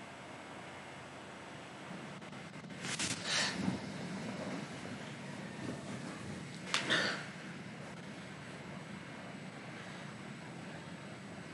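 A young woman speaks softly into a microphone.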